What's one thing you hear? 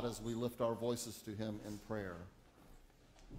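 An older man speaks calmly through a microphone in a large echoing room.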